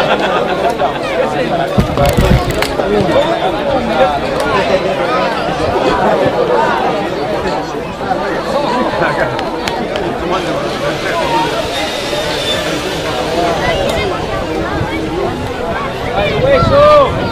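Distant young men shout to each other outdoors.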